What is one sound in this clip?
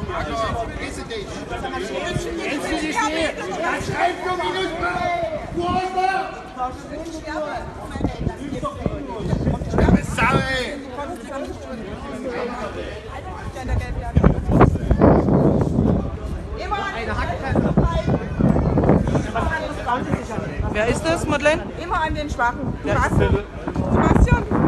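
A crowd of men and women talks and shouts outdoors nearby.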